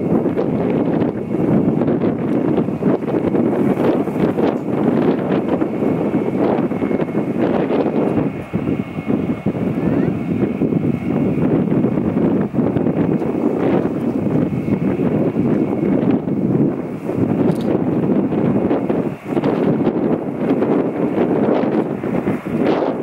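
A large jet airliner's engines roar loudly as it approaches low overhead.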